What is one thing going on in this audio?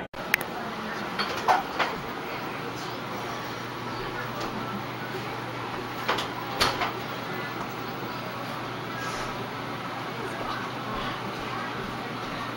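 A woman knocks on a door.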